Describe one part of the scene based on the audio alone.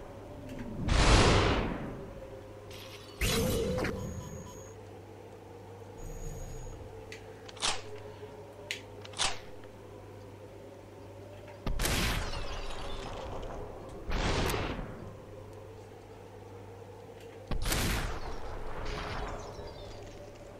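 Gunshots ring out in a game, each with a loud echoing boom.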